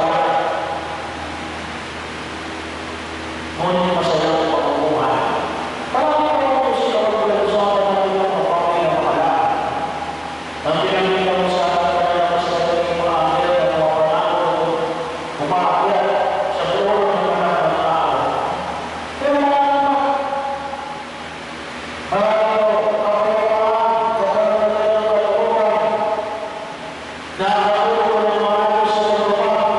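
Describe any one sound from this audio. A middle-aged man sings through a microphone and loudspeakers in an echoing hall.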